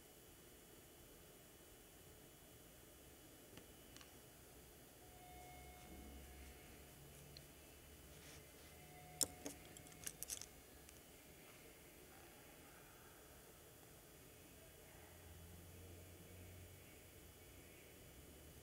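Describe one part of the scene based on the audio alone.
A paintbrush softly brushes on paper.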